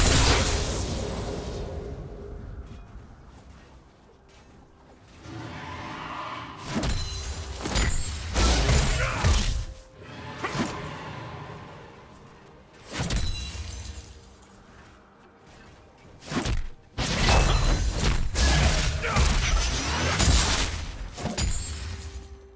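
Game spell effects burst and crackle during a fight.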